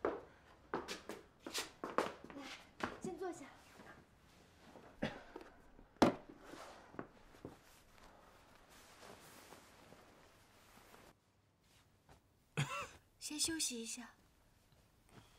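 A young woman speaks softly and with concern, close by.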